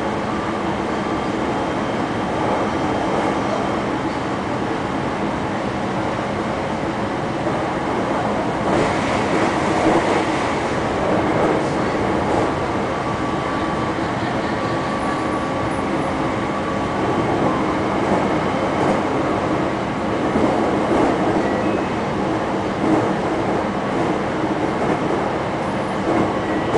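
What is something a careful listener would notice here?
A tram rumbles and rattles steadily along its tracks.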